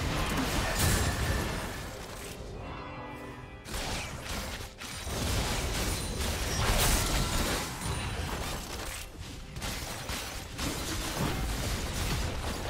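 Spell effects whoosh and crackle in a fast game battle.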